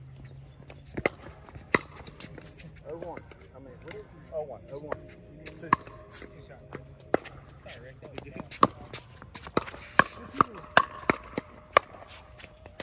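Paddles smack a plastic ball back and forth outdoors.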